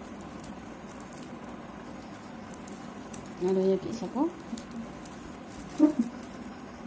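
Plastic strips rustle and crinkle softly.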